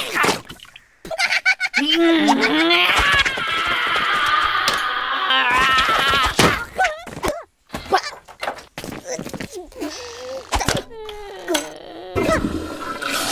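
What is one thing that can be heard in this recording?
A cartoon creature talks excitedly in a high, squeaky voice.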